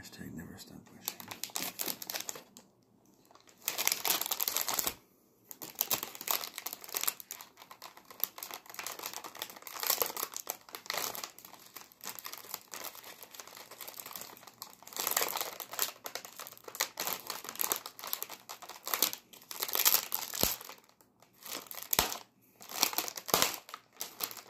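A plastic wrapper crinkles and rustles close up as hands tear it open.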